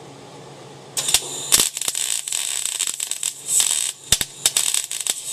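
An arc welder crackles and sizzles.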